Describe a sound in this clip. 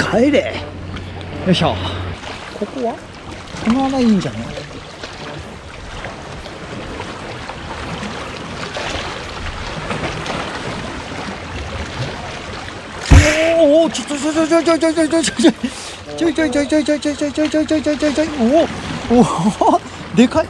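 Water laps gently against rocks.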